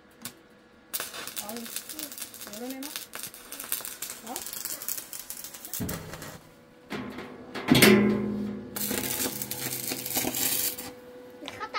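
An electric welding arc crackles and hisses.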